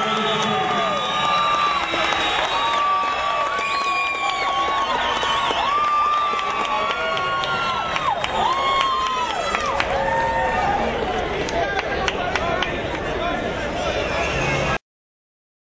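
A crowd cheers and whistles in a large hall.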